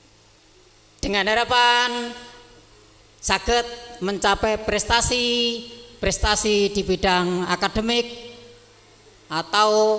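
A middle-aged man speaks into a microphone, heard through a loudspeaker in an echoing room.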